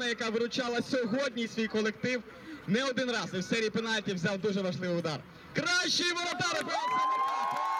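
A young man speaks with animation into a microphone, heard through loudspeakers outdoors.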